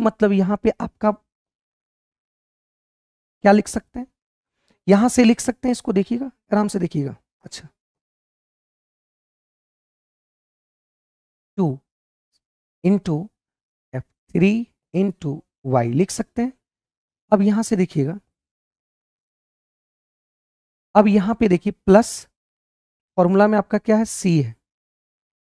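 A man explains with animation into a close microphone, in short bursts with pauses.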